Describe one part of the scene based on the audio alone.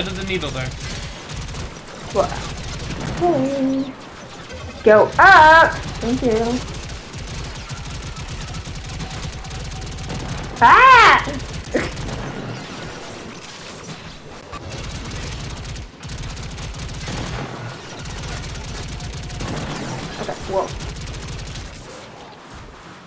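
Rapid gunfire rattles and pounds.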